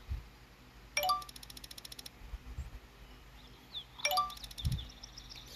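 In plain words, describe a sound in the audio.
A message alert chimes.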